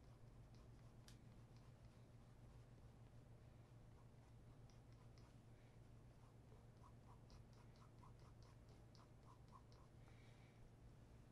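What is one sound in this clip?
A cloth rubs briskly against a leather shoe in quick strokes.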